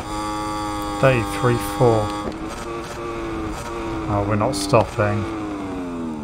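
A racing motorcycle engine blips sharply several times while shifting down.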